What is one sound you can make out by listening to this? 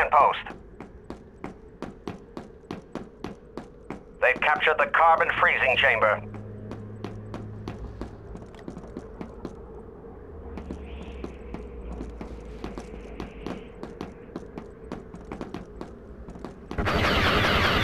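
Footsteps thud quickly and steadily on a hard floor.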